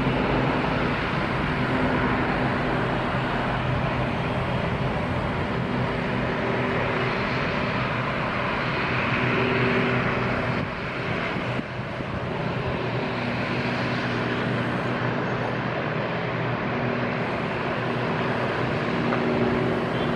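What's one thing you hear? The four turbofan engines of a Boeing 747 freighter roar from a distance as it rolls along a runway.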